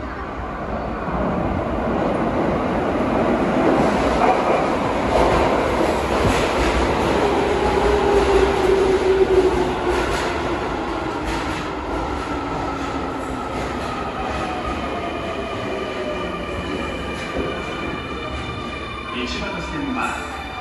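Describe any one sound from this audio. An electric subway train rumbles into an echoing underground platform.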